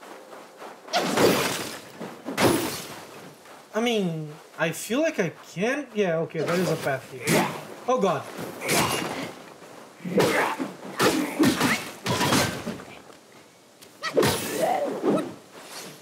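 A staff strikes hard in a fight, with heavy thuds and swishes.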